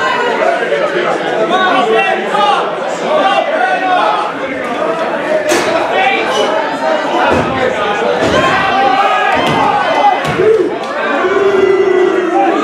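A crowd of people talks and shouts in an echoing hall.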